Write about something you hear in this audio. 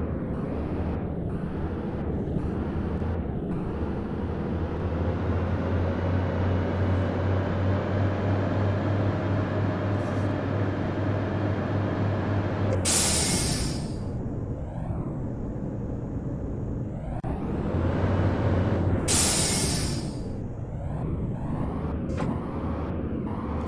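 A truck engine drones steadily as it drives along a road.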